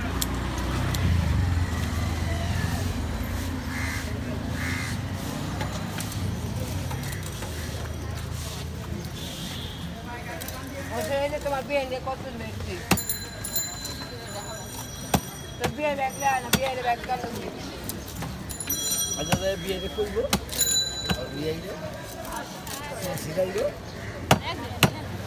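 A knife cuts and scrapes through wet fish flesh close by.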